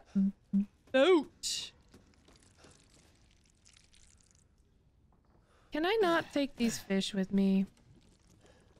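A young woman speaks expressively into a close microphone.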